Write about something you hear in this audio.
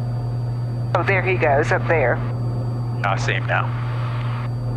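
A woman speaks calmly through a headset intercom.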